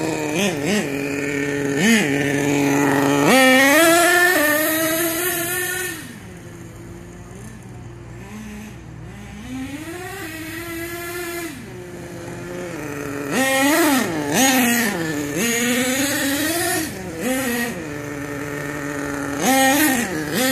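A small electric motor whines, rising and falling in pitch as a toy car speeds around.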